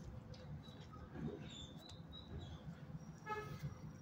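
A dog sniffs close by.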